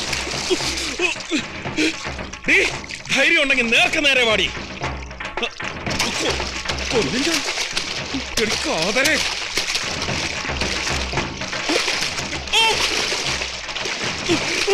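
Water sloshes steadily.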